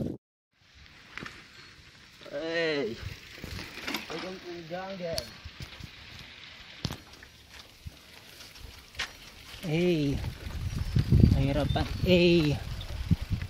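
Bicycle tyres crunch over a dirt path.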